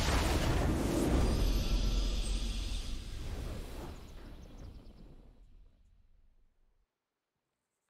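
A triumphant fanfare swells and slowly fades out.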